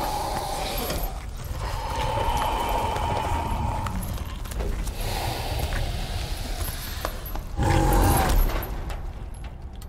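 A creature's claws scrape and thump on metal bars.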